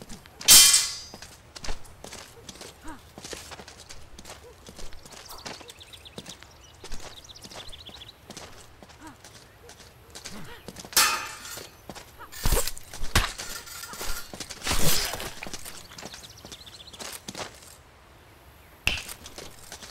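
Swords clash and swish sharply again and again.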